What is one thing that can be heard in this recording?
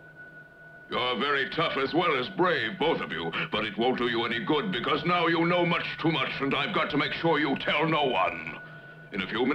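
A man speaks slowly in a deep, sly voice.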